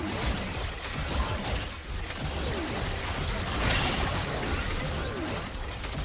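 Fantasy battle sound effects clash and whoosh.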